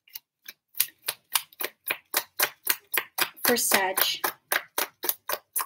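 Fingernails tap and scratch rhythmically on a small hard object close to a microphone.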